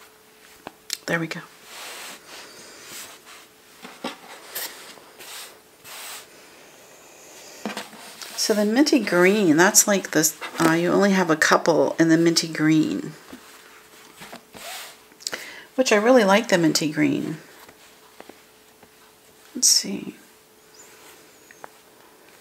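Hands rustle and shuffle stacks of cotton fabric.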